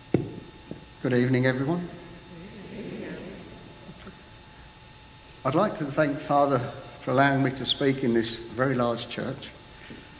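A middle-aged man speaks calmly through a microphone in a large echoing hall.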